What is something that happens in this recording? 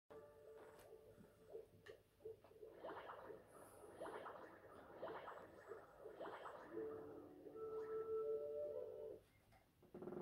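Cheerful game music plays through a television speaker.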